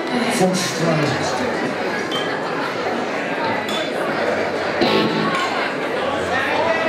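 A live band plays loudly through speakers in a large hall.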